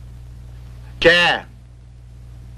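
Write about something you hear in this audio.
A man asks a short question.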